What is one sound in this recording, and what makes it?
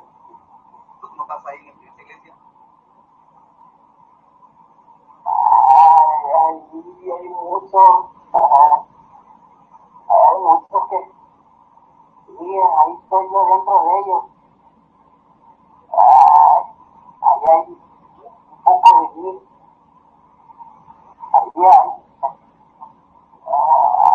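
A man speaks in short, broken bursts, heard thin and muffled as through a television speaker.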